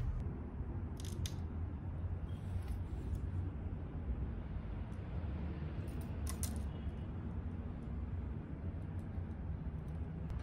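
A screwdriver clicks and scrapes against a metal frame.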